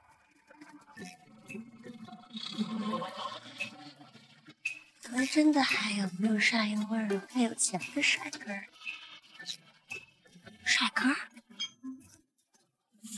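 A young woman talks on a phone with animation.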